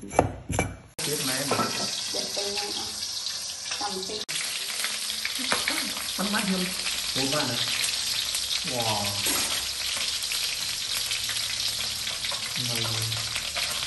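Fish sizzles steadily in a hot pan.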